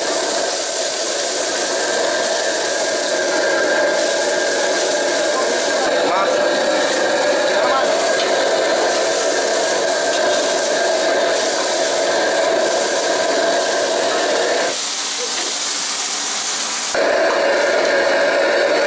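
Water runs steadily from a tap into a basin.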